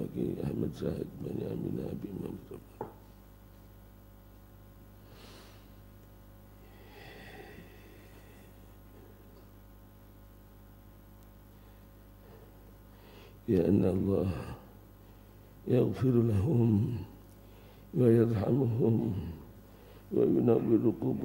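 An elderly man speaks slowly into a microphone in bursts, with long pauses.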